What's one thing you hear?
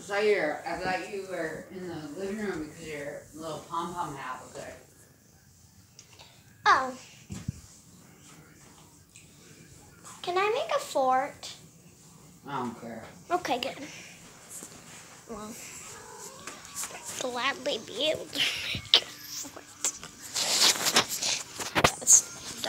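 A young girl talks close by, chattering and laughing.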